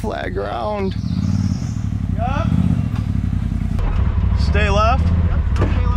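An off-road vehicle's engine rumbles and revs low.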